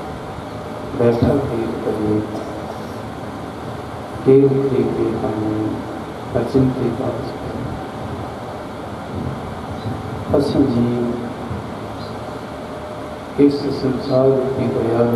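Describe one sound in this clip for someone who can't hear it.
A middle-aged man sings in slow, drawn-out phrases through a microphone.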